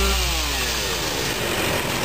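Branches scrape across the road as a worker drags them.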